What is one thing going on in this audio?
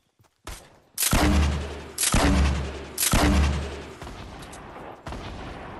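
Loud gunshots boom in heavy bursts.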